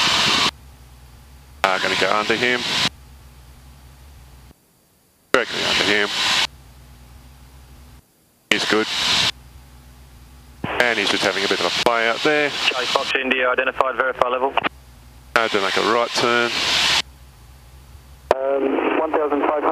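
A man speaks calmly through a headset intercom.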